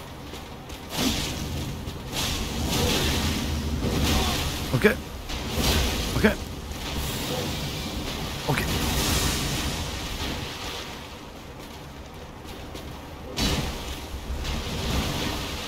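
Water splashes loudly.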